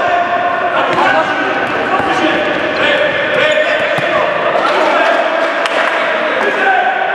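Sneakers squeak on a hard court in an echoing hall.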